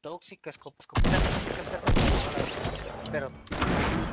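Gunshots crack out in quick bursts.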